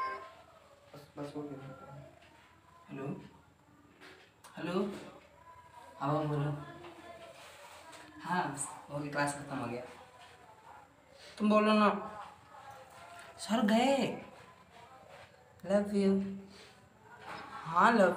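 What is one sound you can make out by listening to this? A young man talks on a phone close by, with animation.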